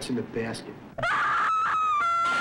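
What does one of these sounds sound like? A woman screams in terror.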